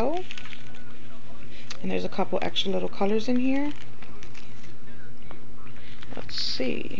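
A plastic bag crinkles softly in a hand.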